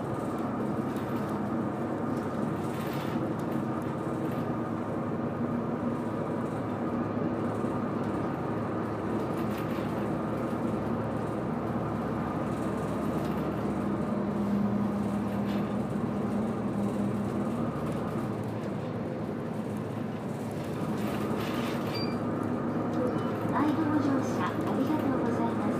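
Tyres roll on a road with a steady rumble.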